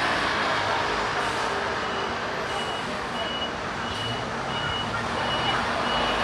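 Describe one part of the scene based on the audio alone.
A bus engine rumbles as the bus pulls past and turns.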